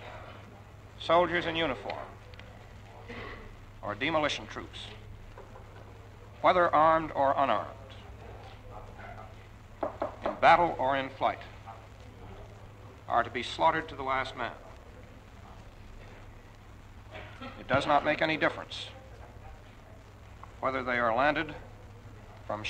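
A man speaks slowly and formally into a microphone, with long pauses.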